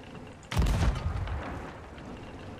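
A cannon booms with a loud blast.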